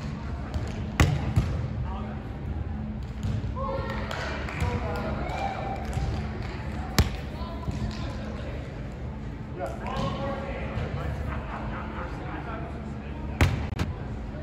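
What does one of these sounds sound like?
A volleyball is struck with a sharp slap in a large echoing hall.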